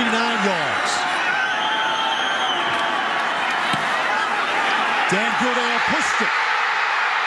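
A large stadium crowd roars loudly and steadily.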